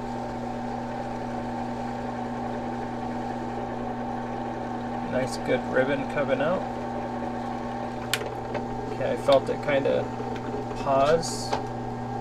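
A drill press motor hums steadily.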